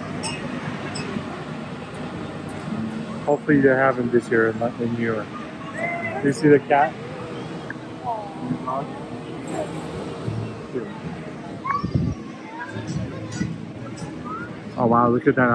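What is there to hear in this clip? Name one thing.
A crowd of children and adults chatters and calls out nearby outdoors.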